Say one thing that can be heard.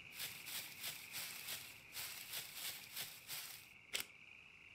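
Footsteps swish through grass at a steady walking pace.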